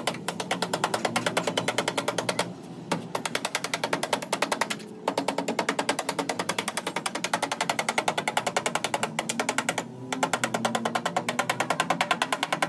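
A hammer taps rapidly and steadily on sheet metal, with brief pauses.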